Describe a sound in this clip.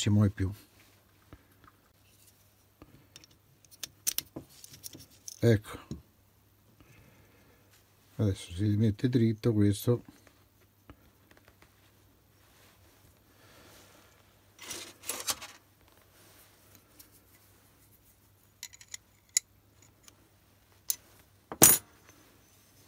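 Small steel parts click and tap against each other as they are fitted together by hand.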